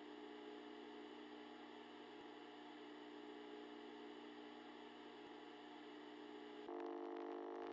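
A steady electronic tone hums.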